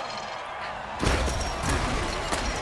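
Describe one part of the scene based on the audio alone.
Armoured players crash together in a heavy tackle.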